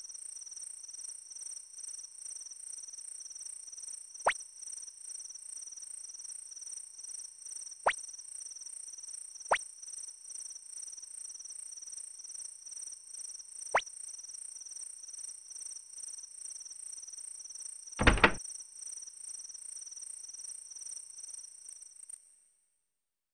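Soft electronic game music plays steadily.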